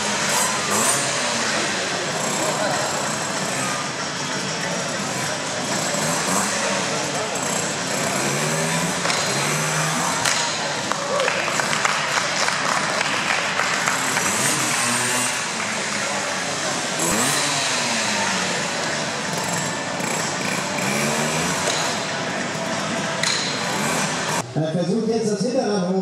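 A motorbike engine revs up and down, echoing in a large hall.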